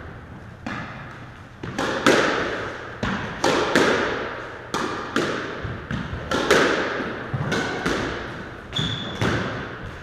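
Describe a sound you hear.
A squash ball smacks off the walls with sharp, echoing bangs.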